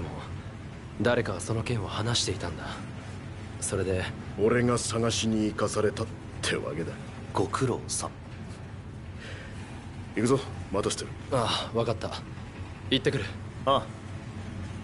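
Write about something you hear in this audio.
Young men talk calmly with each other, close by.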